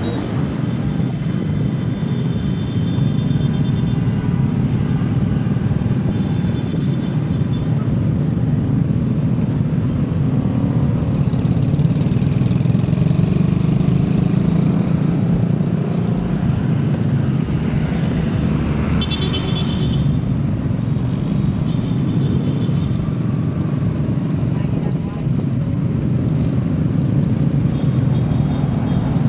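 Motorcycle engines hum steadily close by.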